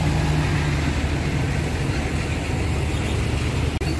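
A motorbike engine putters past.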